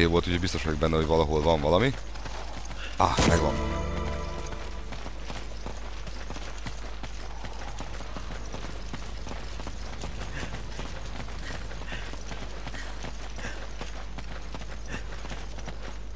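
Footsteps thud quickly on soft ground as a man runs.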